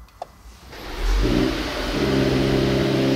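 A car engine starts with a roar.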